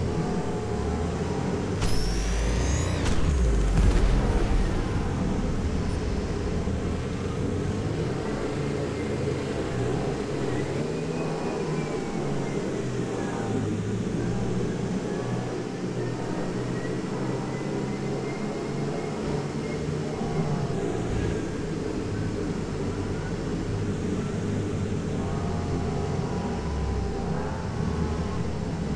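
A flying saucer's engine hums steadily.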